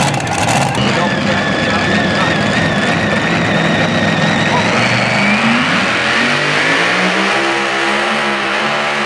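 A tractor engine roars steadily, then revs higher.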